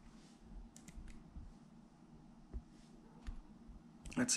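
Small plastic parts click softly as a tool is handled.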